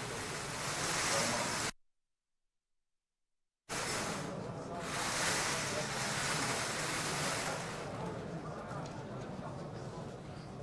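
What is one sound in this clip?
Plastic balls rattle in a lottery drum.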